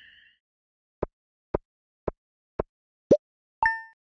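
Short electronic blips sound one after another, evenly spaced.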